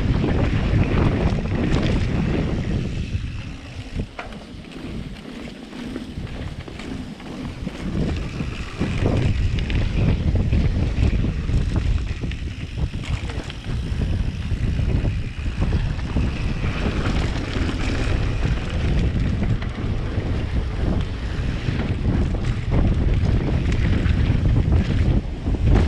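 Wind rushes loudly past a rider on a bicycle.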